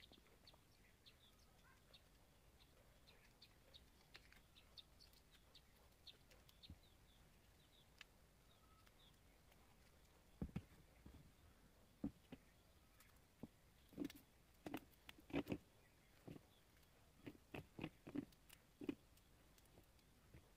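Small parts click and rustle in a man's hands.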